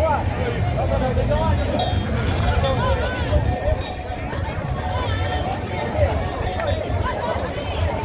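A crowd of people shouts and chatters outdoors.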